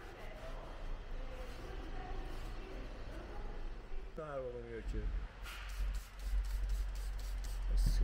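A cloth rubs and wipes over a surface.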